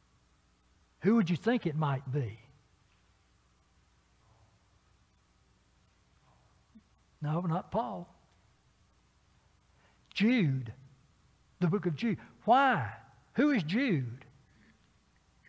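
A man preaches slowly into a microphone, with long pauses between phrases.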